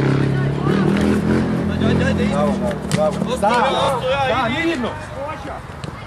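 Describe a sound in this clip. A football thuds when kicked.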